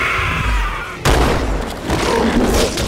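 A heavy melee blow lands with a thud.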